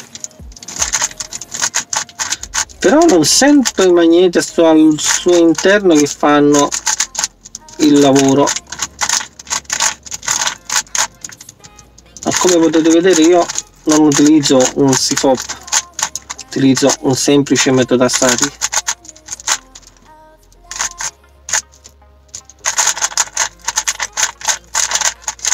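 A puzzle cube clicks and clacks as it is turned quickly.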